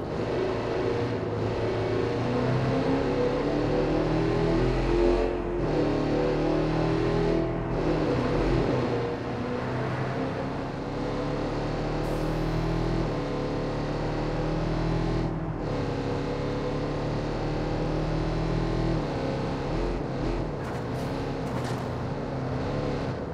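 A van engine hums steadily as it drives along a street.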